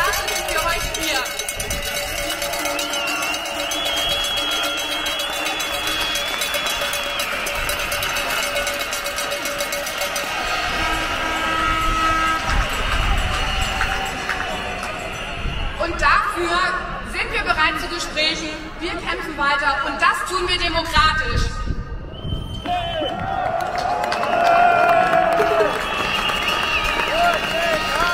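Music plays loudly over outdoor loudspeakers.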